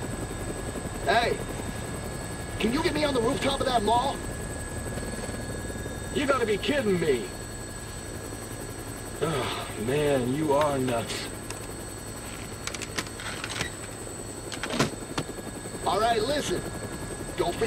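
A second man calls out loudly from an open helicopter door.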